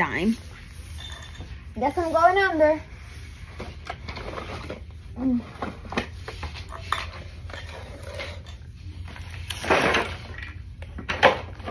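A young girl's clothes rustle as she shifts on a hard floor.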